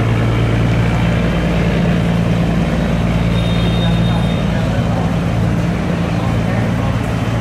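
Water splashes and churns behind a passing boat.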